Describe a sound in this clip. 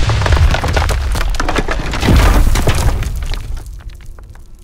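A wooden tower collapses with loud crashing and cracking.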